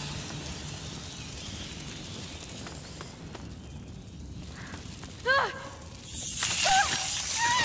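A torch flame crackles softly.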